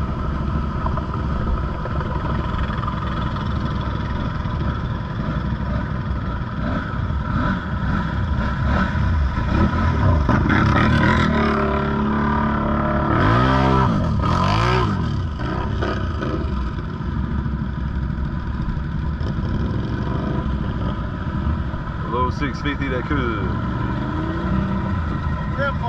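An all-terrain vehicle engine rumbles and revs close by.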